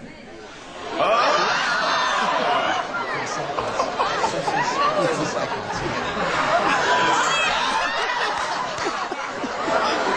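An audience screams and laughs loudly.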